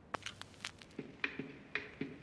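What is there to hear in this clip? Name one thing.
Music starts playing from a vinyl record.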